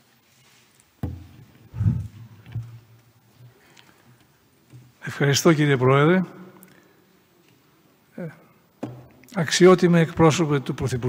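An elderly man speaks slowly into a microphone, with long pauses.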